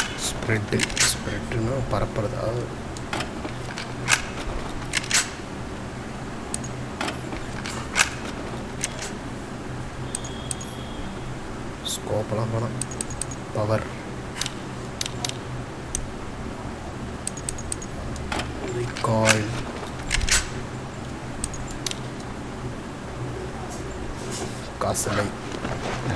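Short clicks and ticks sound repeatedly as game menu selections change.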